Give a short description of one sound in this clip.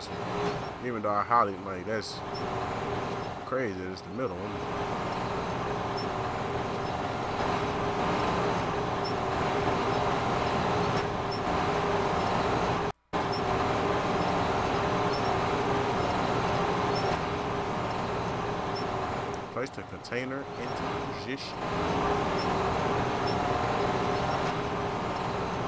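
A crane motor hums and whirs steadily as the crane swings.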